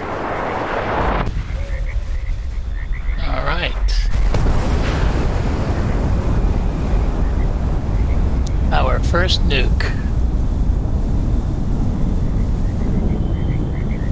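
A huge explosion booms and rumbles deeply.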